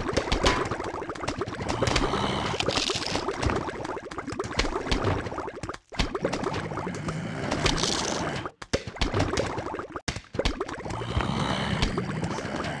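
Rapid soft popping and thudding sounds of cartoon projectiles hitting targets.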